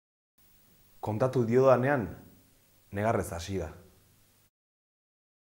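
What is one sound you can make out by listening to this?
A man speaks calmly, close up.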